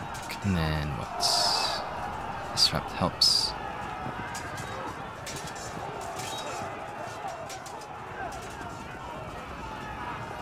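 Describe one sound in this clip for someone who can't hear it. Muskets fire in sharp, scattered cracks.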